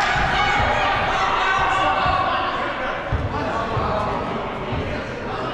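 Balls thud on the floor and bounce.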